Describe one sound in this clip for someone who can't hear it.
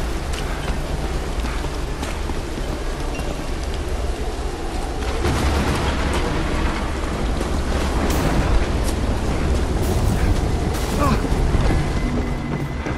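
Footsteps crunch over the ground at a steady walking pace.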